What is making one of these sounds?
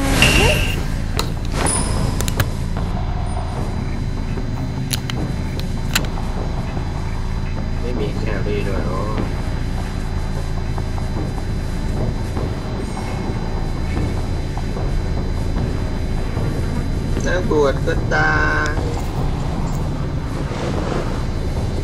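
A low wind rushes steadily.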